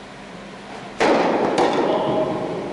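A tennis racket strikes a ball with a sharp pop that echoes in a large hall.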